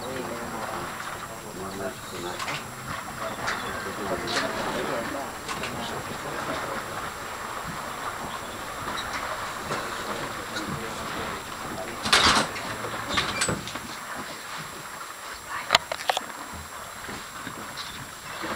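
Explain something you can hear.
Water splashes as elephants drink at the water's edge.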